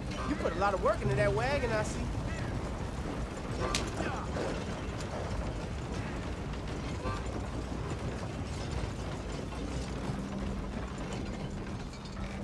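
Horse hooves clop steadily on dirt.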